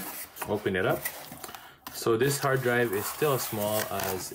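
Cardboard flaps rustle and tap as an insert is lifted out.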